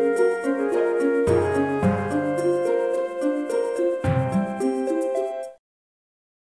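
Lively melodic game music plays loudly, then stops abruptly.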